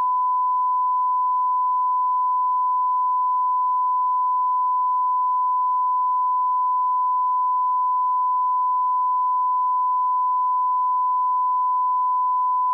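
A steady high-pitched test tone sounds without a break.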